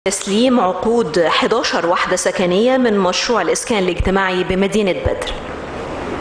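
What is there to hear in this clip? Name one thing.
A young woman sings through a microphone.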